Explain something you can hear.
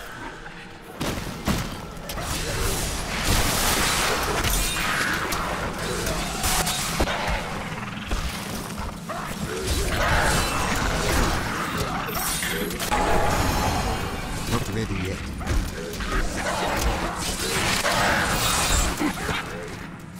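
Magic blasts and weapon blows crash and explode in a loud, busy battle.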